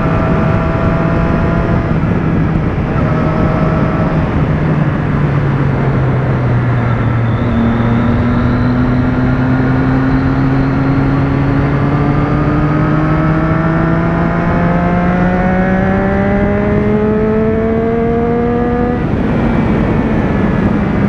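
A motorcycle engine hums and revs, rising steadily in pitch as it speeds up.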